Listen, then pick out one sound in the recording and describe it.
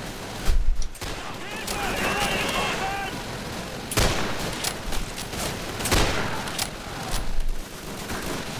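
Rifle shots crack and boom in a video game.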